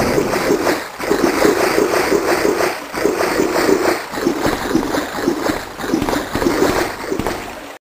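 Footsteps echo on a hard floor in a narrow passage.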